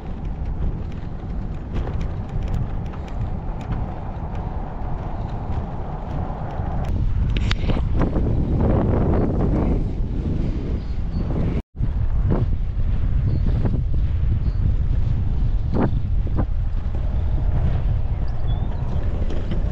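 Wind blows steadily across open ground, buffeting the microphone.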